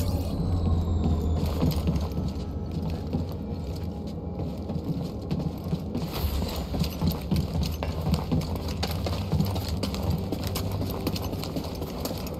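Footsteps run quickly on a metal floor.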